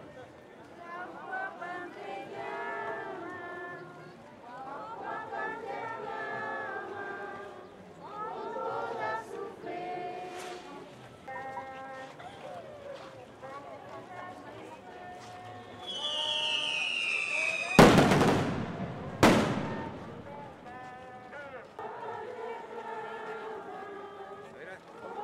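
A crowd of men and women sings together outdoors.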